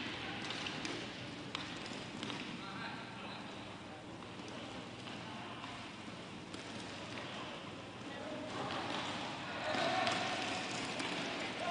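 Sticks click against a ball.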